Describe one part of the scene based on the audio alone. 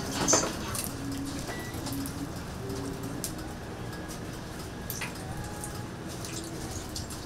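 Food sizzles softly on a hot griddle.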